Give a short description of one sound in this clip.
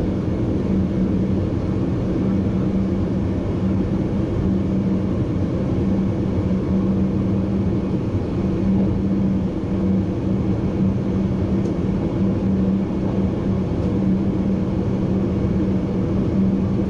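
A train rumbles steadily along the tracks with a low droning hum.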